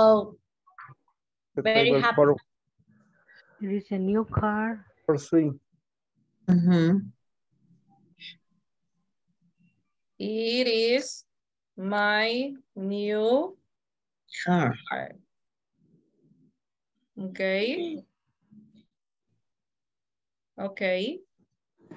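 A woman speaks slowly and clearly over an online call, pausing often.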